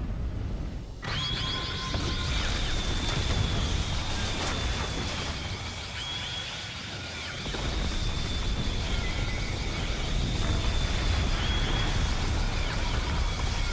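A woman lets out a piercing, sustained scream.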